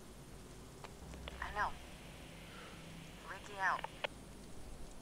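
A man's voice crackles over a radio.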